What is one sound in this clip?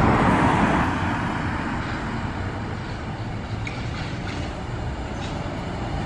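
A car passes close by with a tyre swish.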